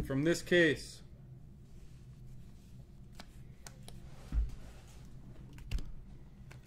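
Trading cards click and rustle as hands shuffle through a stack.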